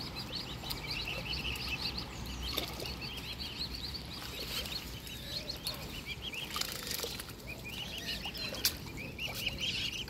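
Swans dabble and splash softly in shallow water.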